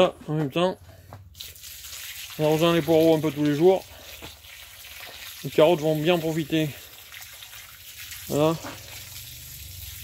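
Water pours from a hose and splashes onto wet soil.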